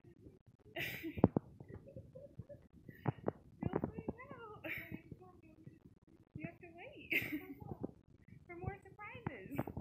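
A middle-aged woman gasps and laughs in surprise.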